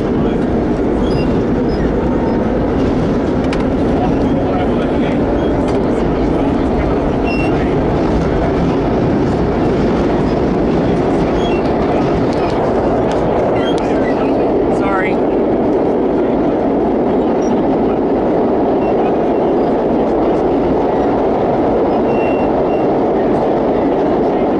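A subway train roars loudly through a tunnel.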